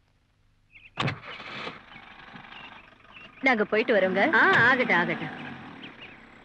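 A woman speaks with feeling close by.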